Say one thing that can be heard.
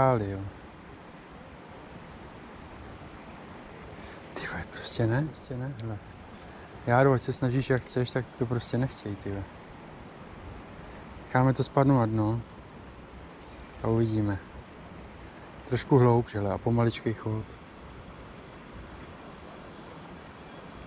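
A river flows gently nearby.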